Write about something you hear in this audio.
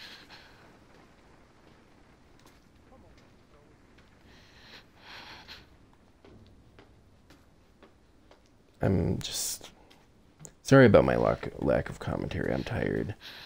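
Footsteps creak slowly across a wooden floor.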